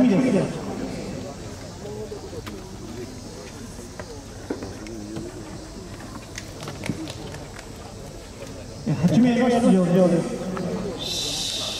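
A crowd murmurs and chatters across an open-air stadium.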